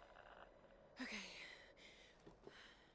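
A young woman speaks briefly and quietly.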